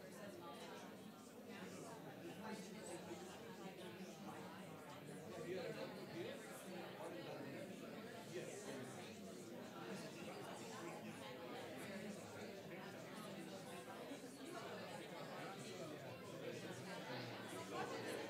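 Many people chatter at once in a large room, a steady murmur of voices.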